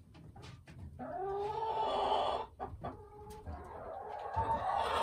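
A hen clucks and croons in a long, drawn-out way close by.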